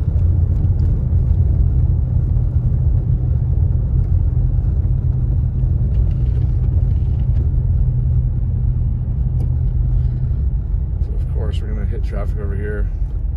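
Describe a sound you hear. A car engine hums with a low, steady rumble while driving.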